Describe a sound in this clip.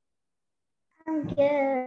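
A young girl talks over an online call.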